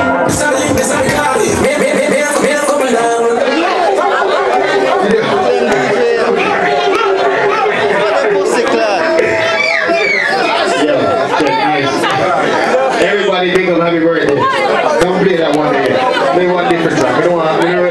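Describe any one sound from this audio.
A crowd of young men and women talks and laughs nearby.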